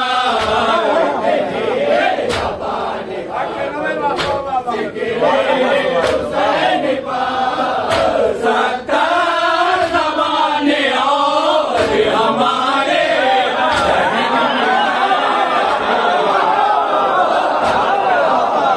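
A man chants loudly through a microphone.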